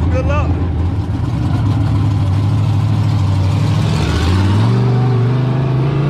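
A race car engine idles and revs.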